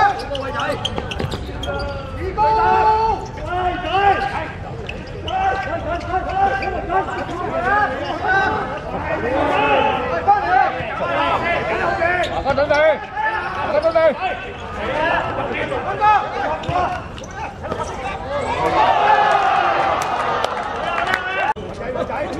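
Several young men shout and call out.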